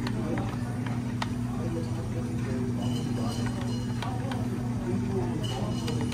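A spoon stirs and clinks against a cup.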